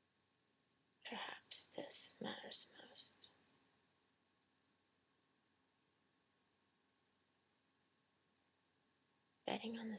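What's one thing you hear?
A middle-aged woman speaks calmly close to a microphone.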